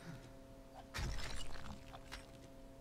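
A rock crumbles and breaks apart with a rumble.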